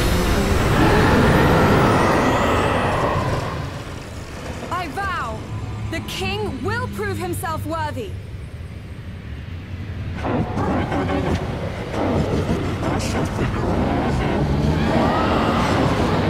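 A giant sea creature roars.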